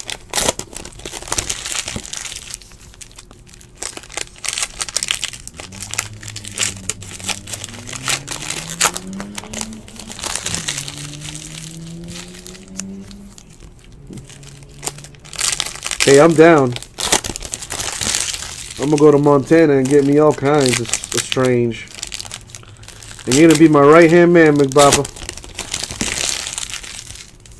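Foil card wrappers crinkle and rustle close by.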